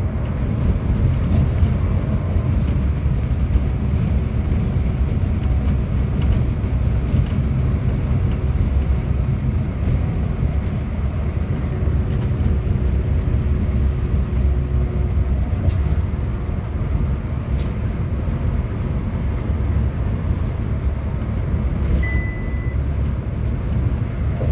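A bus engine rumbles steadily from inside the bus as it drives.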